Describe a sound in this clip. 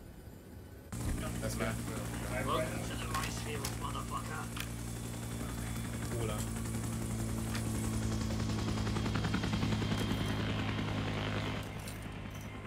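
A helicopter engine and rotor drone steadily.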